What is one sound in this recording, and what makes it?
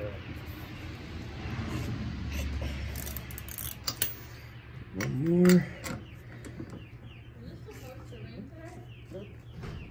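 A ratchet wrench clicks as metal bolts are turned.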